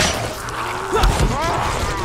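A heavy blow thuds into a zombie.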